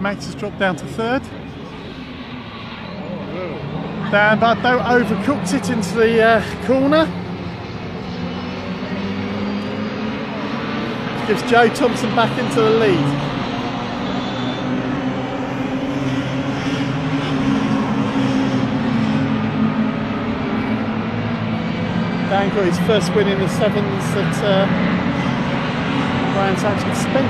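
Engines drone steadily in the distance.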